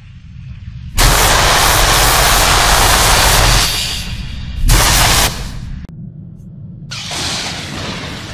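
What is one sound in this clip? Electric lightning crackles and buzzes loudly.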